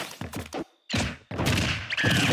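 Video game fighting sound effects crack and thud as blows land.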